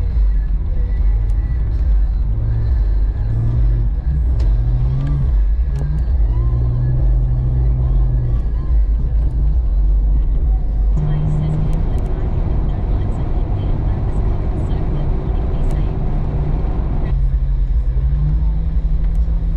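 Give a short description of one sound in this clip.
Tyres rumble and hiss over snowy road.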